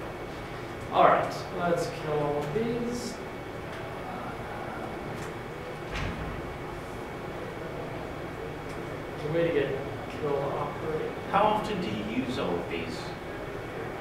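A young man speaks calmly, heard through a microphone.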